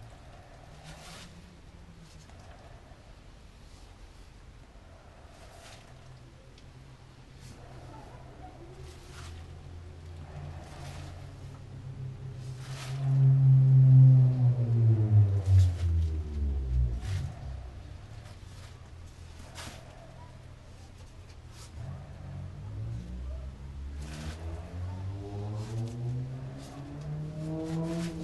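A paintbrush swishes in repeated strokes across a smooth surface.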